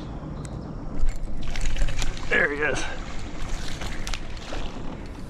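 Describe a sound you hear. Fishing gear knocks and rustles against a kayak close by.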